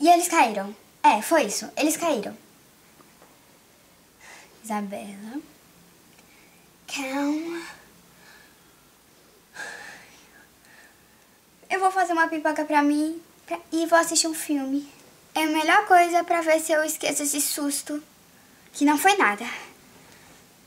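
A young girl talks close by with animation, in bursts with pauses.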